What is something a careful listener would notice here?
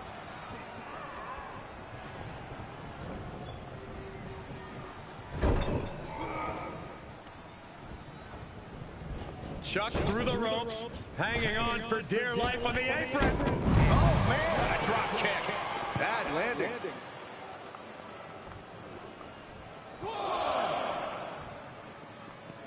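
A large crowd cheers and murmurs in a big arena.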